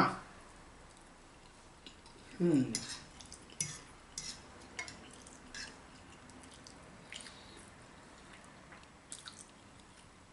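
A man slurps noodles loudly up close.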